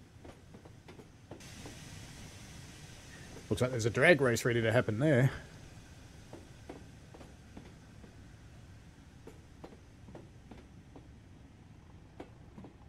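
Train wheels click steadily over rail joints.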